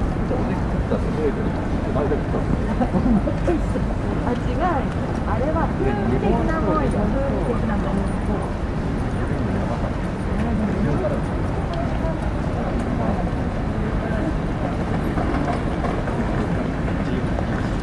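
A crowd of people chatter nearby on a busy street outdoors.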